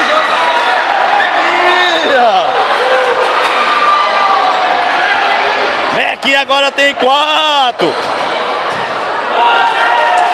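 A large crowd cheers and shouts in an echoing indoor hall.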